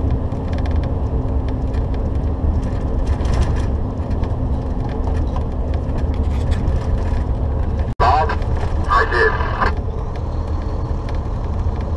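Tyres roll over a snowy road.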